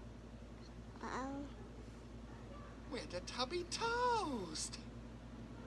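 A baby coos and babbles up close.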